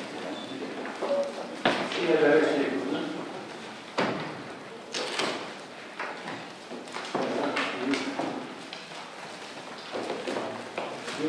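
A man speaks through a microphone in a reverberant room.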